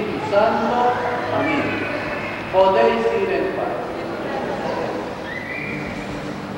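A woman sings nearby in a reverberant room.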